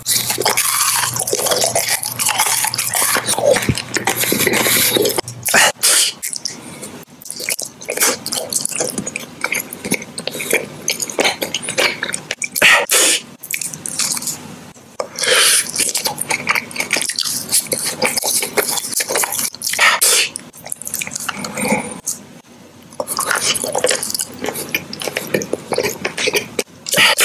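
A man chews and smacks his lips close to a microphone.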